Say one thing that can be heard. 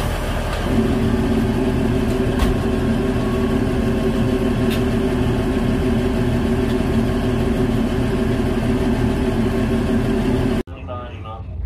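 A locomotive engine hums steadily nearby.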